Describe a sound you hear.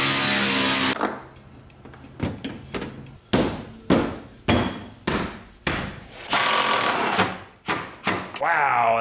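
Plastic parts click and knock as a headlight is fitted.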